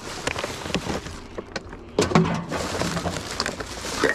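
A plastic bottle crinkles in a hand.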